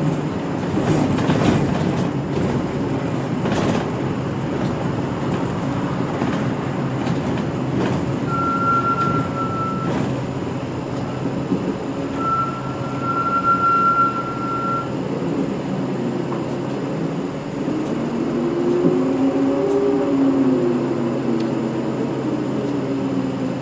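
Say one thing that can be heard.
A car's engine hums steadily from inside as it drives along a road.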